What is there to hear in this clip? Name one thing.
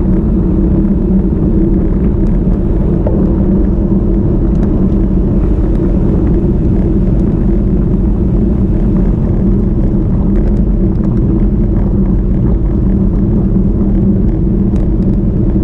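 Bicycle freewheels tick in small clicks.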